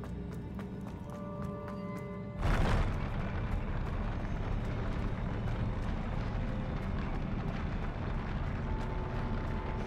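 Footsteps hurry across a hollow metal walkway.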